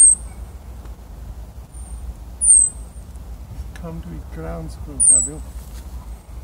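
A small animal gives sharp, high whistling calls, a few seconds apart.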